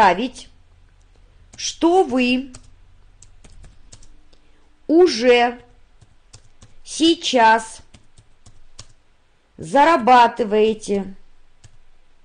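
A woman speaks in short, calm phrases through a microphone, with long pauses between them.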